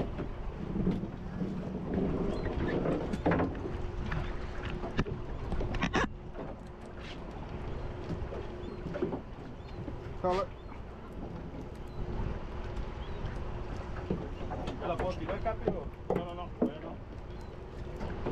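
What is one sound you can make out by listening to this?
A fishing reel clicks and whirs as line is wound in.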